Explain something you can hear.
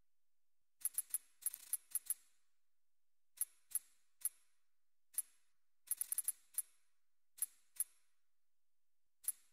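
Short, sharp menu ticks click in quick bursts.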